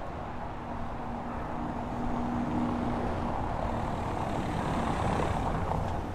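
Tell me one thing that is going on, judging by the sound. A car engine hums nearby.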